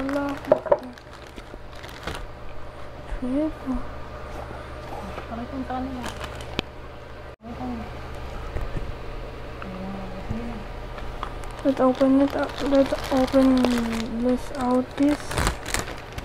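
A young girl speaks close to a microphone.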